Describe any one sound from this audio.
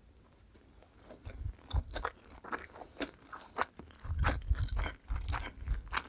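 A young woman chews a sushi roll with wet mouth sounds close to a microphone.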